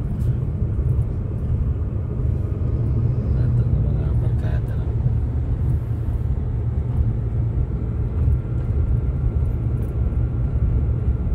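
A car engine hums steadily from inside the cabin as the car drives along.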